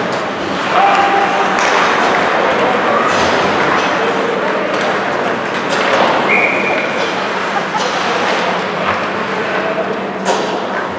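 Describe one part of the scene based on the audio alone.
Skates scrape and carve across the ice.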